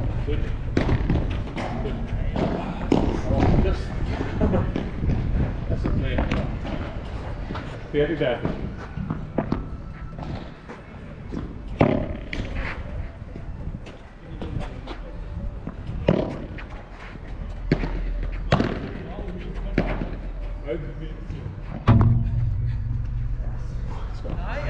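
Padel paddles strike a ball with sharp pops.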